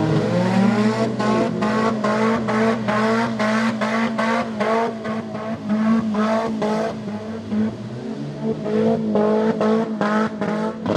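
A second engine revs loudly in rapid, rising bursts.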